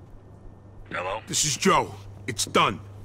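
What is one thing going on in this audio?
A man talks on a telephone with animation.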